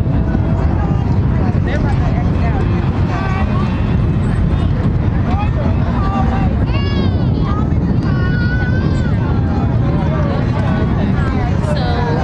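Children chatter and shout outdoors in the background.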